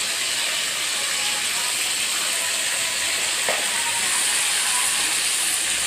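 Food sizzles in hot oil in a wok.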